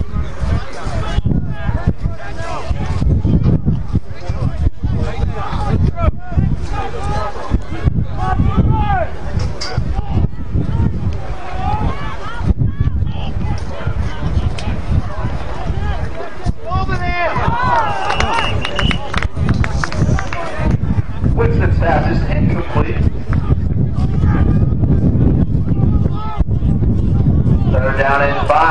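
A crowd of spectators and players chatters and shouts from a distance.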